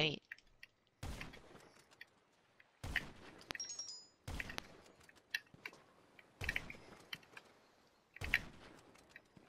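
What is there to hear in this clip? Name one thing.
A sniper rifle fires sharp, loud shots at a steady pace.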